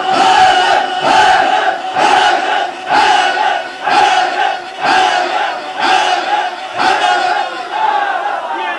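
A crowd beats their chests in a steady rhythm, about once a second.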